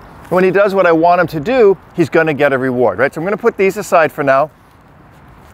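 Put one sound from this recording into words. A man speaks calmly outdoors.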